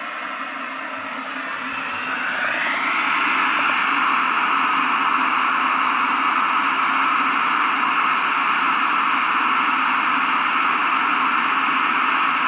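A camping stove burner roars steadily under a pot of water.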